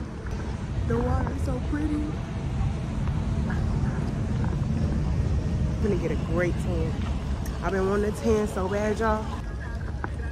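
A young woman talks casually close to the microphone.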